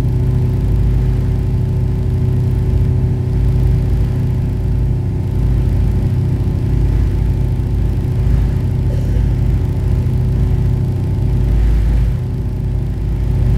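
Water churns and splashes in a boat's wake.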